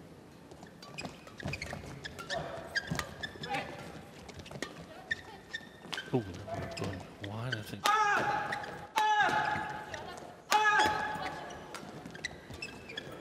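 A shuttlecock is struck sharply back and forth by rackets.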